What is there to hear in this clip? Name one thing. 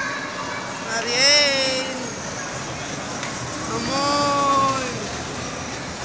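A child squeals loudly nearby.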